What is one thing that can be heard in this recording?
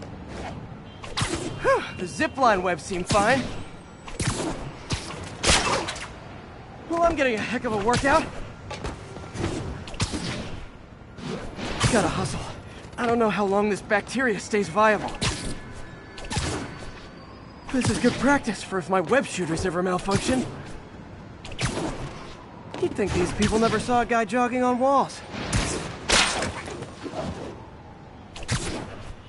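Web lines snap and whoosh again and again as a figure swings through the air.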